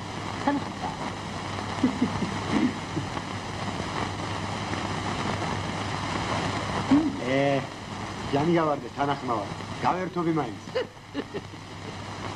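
A middle-aged man speaks with animation over a steady hiss.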